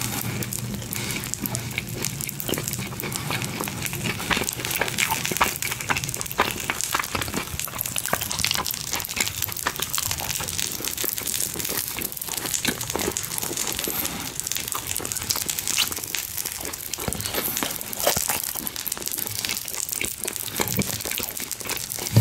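A man chews food loudly and wetly close to the microphone.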